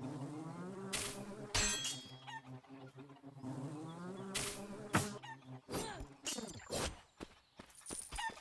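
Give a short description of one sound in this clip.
Swords clash and thud in a fight.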